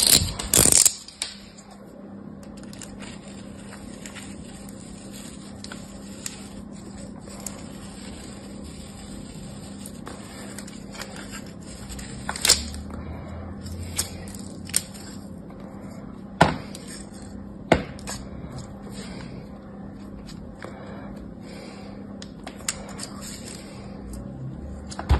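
A metal blade scrapes softly through sand.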